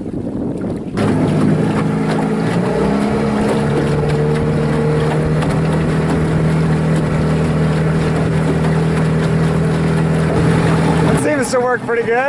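An outboard motor hums steadily close by.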